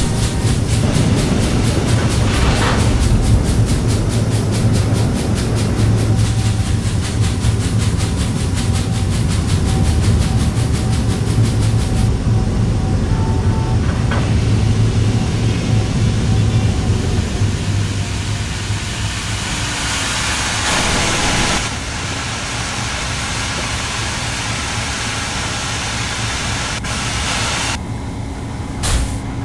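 A train rumbles along the tracks with a steady low drone.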